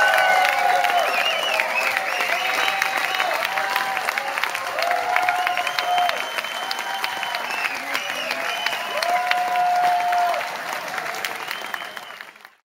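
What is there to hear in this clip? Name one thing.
A crowd whistles shrilly and repeatedly.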